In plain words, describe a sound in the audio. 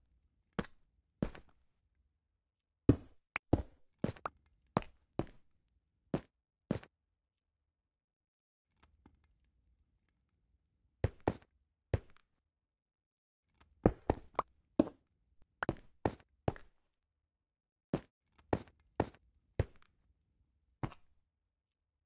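Stone blocks are placed with short, dull clunks.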